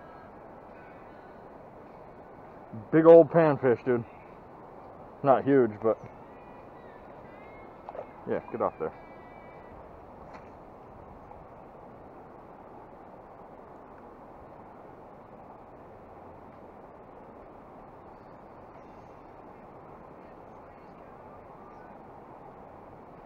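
A river flows gently nearby.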